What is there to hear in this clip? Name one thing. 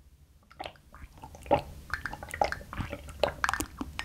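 A young woman gulps a drink close to a microphone.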